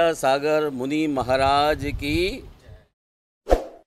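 A man chants in a melodic voice into a microphone.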